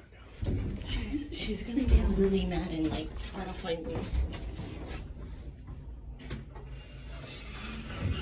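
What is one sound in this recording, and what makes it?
Clothing rustles and brushes close to the microphone.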